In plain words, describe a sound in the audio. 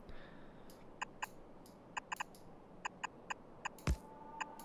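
Short game clicks tick one after another as pieces are placed.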